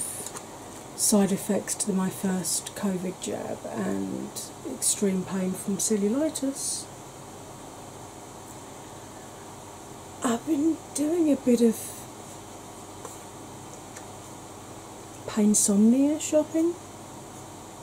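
A woman talks calmly close to a microphone, in short bursts with pauses.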